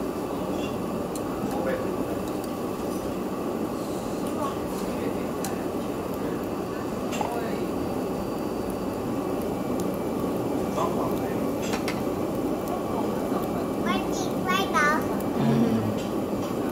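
Slices of meat sizzle on a wire grill over charcoal.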